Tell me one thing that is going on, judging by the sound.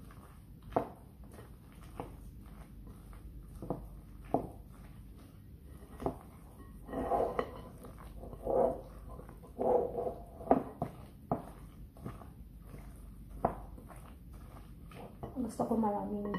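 A spatula scrapes and taps against a glass bowl while mashing food.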